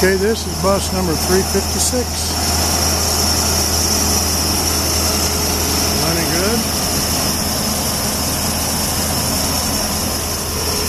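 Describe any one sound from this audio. A diesel engine idles with a steady, rough rumble close by.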